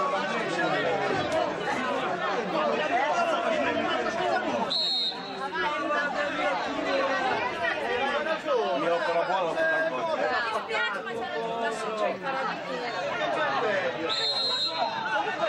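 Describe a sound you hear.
A crowd of spectators chatters and calls out close by, outdoors.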